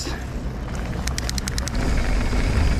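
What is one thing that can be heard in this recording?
A bicycle freewheel clicks rapidly.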